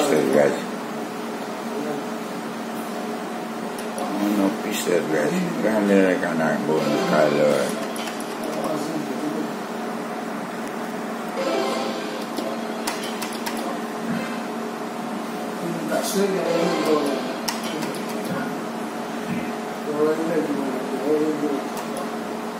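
A slot machine plays a bright electronic jingle.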